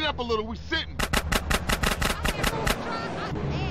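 Gunshots fire in a quick burst.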